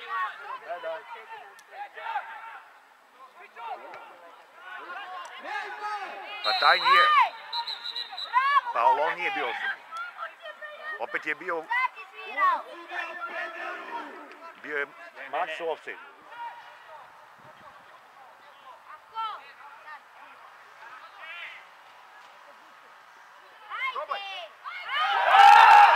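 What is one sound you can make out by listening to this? Football players shout to each other across an outdoor pitch.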